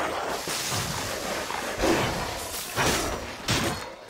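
Shattering ice crashes and rumbles.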